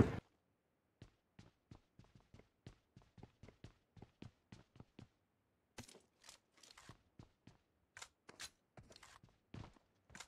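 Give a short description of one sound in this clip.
Keyboard keys click rapidly.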